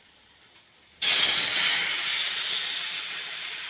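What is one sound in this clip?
Chopped tomatoes drop into hot oil and sizzle loudly.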